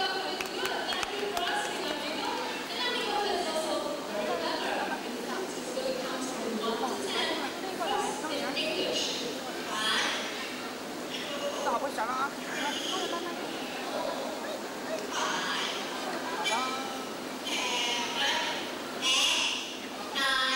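A young woman speaks cheerfully into a headset microphone, heard through a loudspeaker.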